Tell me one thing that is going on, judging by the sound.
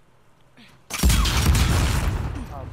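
A glass bottle smashes loudly.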